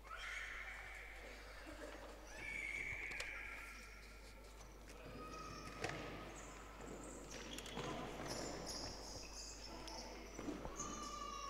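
Shoes squeak sharply on a hard indoor court.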